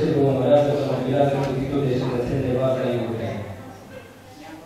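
An elderly man speaks into a microphone, reading out in a calm voice.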